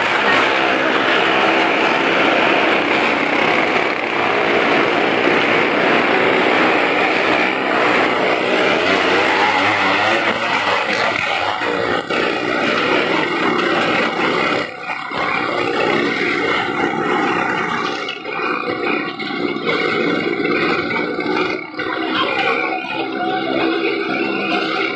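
A car engine roars loudly and steadily, echoing.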